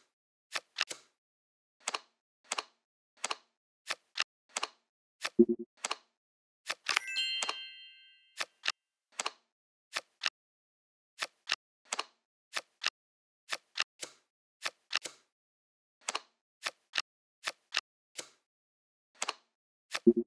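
Playing cards snap into place with short, crisp clicks.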